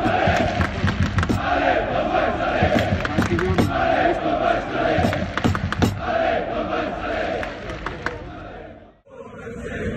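A large crowd chants loudly and rhythmically outdoors.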